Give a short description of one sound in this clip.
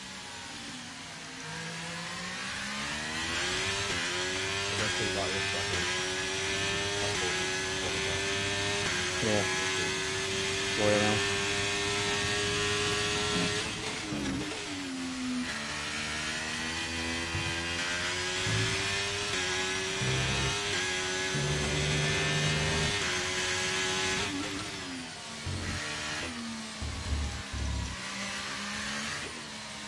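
A racing car engine screams, rising in pitch through the gears on the straights and dropping as it brakes into corners.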